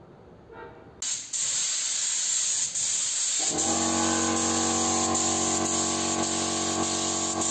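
A spray gun hisses steadily.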